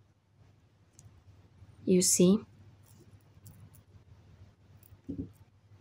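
Tiny beads click softly as they slide along a needle.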